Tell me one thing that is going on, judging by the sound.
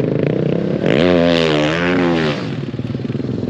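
A motorcycle engine revs up sharply.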